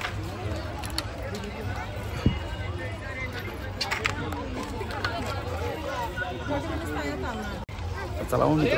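A crowd of people chatters in a busy outdoor market.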